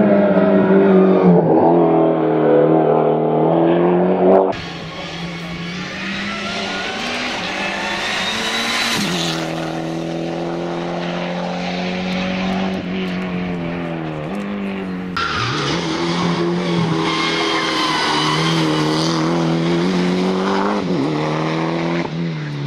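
A rally car engine roars loudly, revving up and down as the car shifts gears.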